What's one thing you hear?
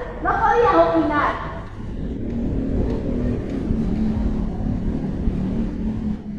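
A woman speaks with animation into a microphone, heard through a loudspeaker.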